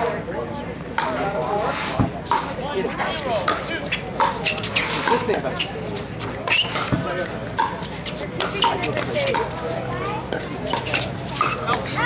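Paddles hit a plastic ball with sharp pops, back and forth.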